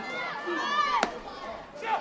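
A pitched baseball smacks into a glove.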